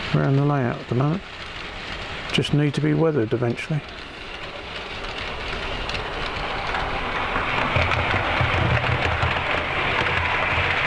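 A model train whirs and rattles along the track.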